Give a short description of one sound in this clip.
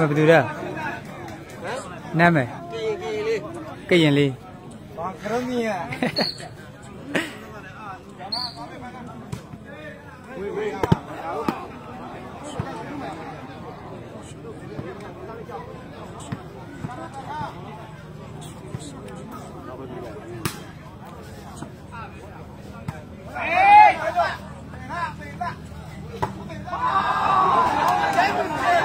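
A crowd of men chatters and shouts outdoors.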